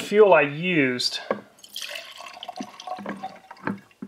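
Liquid pours into a glass jar.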